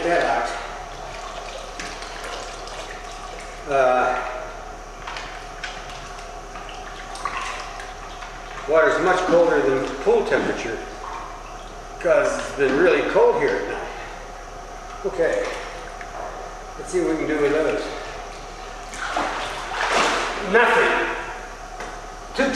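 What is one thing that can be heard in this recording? A young boy talks with animation in an echoing hall.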